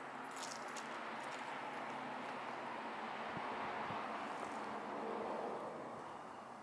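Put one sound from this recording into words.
A pickup truck drives past at a distance.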